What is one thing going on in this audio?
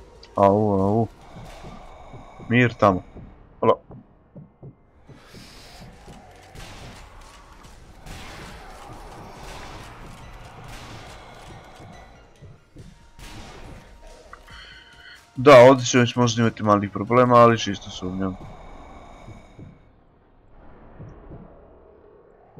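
A sniper rifle fires sharp, echoing shots.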